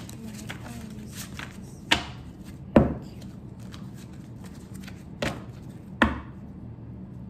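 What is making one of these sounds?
Plastic packaging crinkles and taps in a woman's hands.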